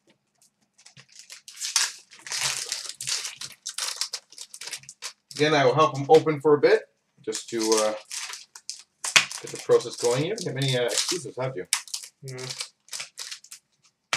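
Card wrappers rustle and tear as packs are opened.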